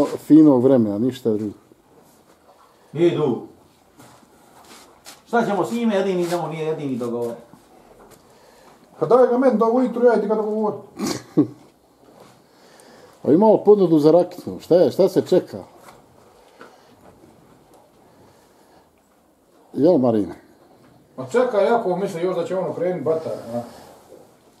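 A man talks calmly close by, in short bursts with pauses.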